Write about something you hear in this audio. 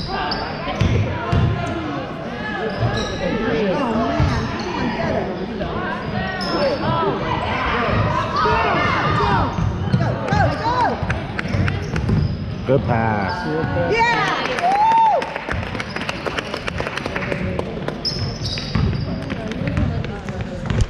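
Sneakers squeak sharply on a wooden gym floor.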